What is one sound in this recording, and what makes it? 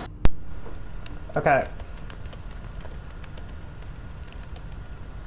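Footsteps patter quickly on hard pavement.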